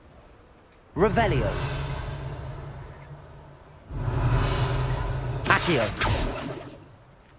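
A magic spell whooshes and shimmers loudly.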